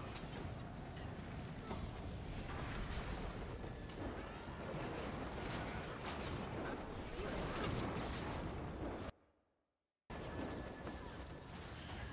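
Fire spells roar and crackle in a game battle.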